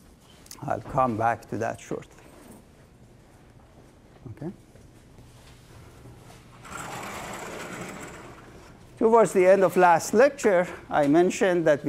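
A middle-aged man lectures through a microphone in a room with a slight echo.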